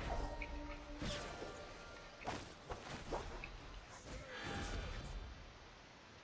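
Video game sound effects of magic attacks burst and crackle.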